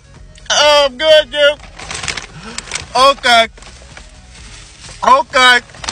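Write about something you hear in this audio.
A young man speaks close up in a strained, whining voice.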